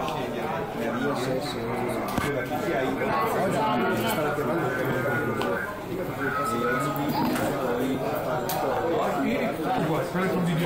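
A crowd of adults chatters all around indoors.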